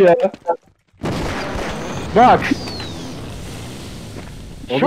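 An electric weapon crackles and hums as it fires.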